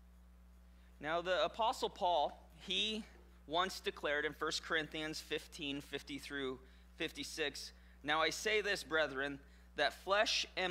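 A man reads aloud through a microphone in a calm voice.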